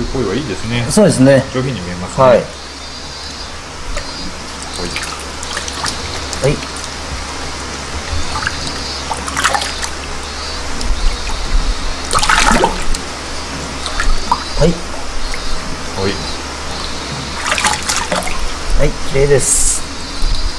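Water splashes and sloshes as hands scoop and lift a fish.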